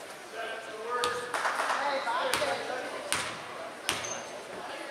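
A basketball bounces on a wooden floor a few times.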